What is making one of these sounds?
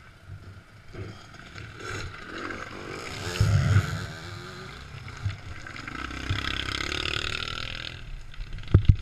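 A dirt bike engine revs loudly as the bike climbs close by.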